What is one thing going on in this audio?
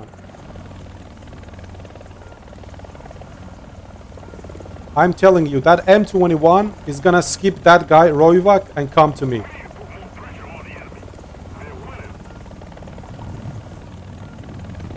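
A helicopter's rotor thumps with a steady low drone.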